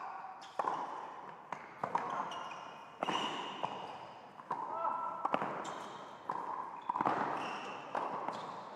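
Tennis balls are struck hard with rackets again and again in a large echoing hall.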